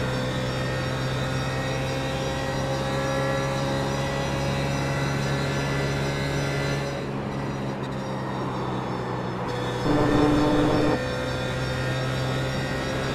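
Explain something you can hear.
A race car engine drones steadily at high revs, dipping briefly as it shifts.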